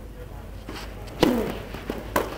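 A tennis racket strikes a ball with a sharp pop.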